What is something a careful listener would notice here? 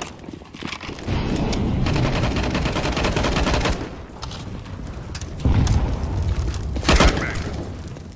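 Rapid gunshots fire in bursts, loud and close.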